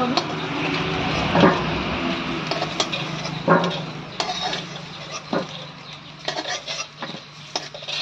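Hot oil sizzles in a pan.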